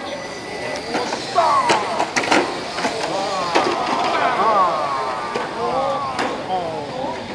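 Model cars clack against the track's barriers.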